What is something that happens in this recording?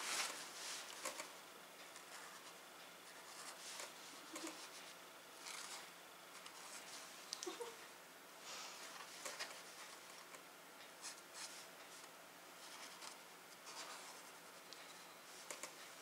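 A marker squeaks faintly on cloth.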